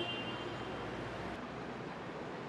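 A car drives by in street traffic.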